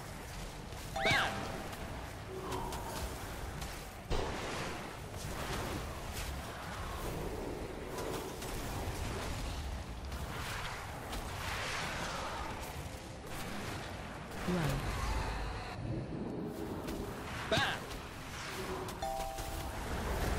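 Bright chimes ring out now and then.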